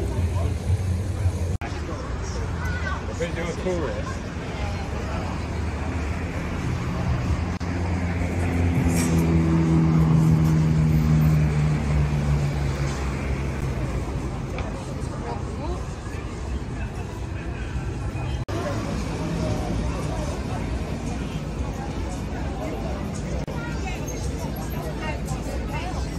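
A crowd murmurs and chatters outdoors on a busy street.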